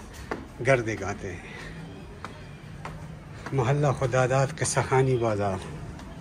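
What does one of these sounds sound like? Footsteps scuff on concrete steps.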